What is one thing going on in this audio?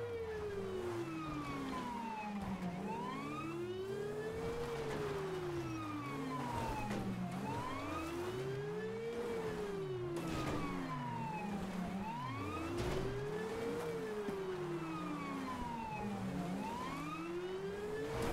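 A police siren wails, rising and falling steadily.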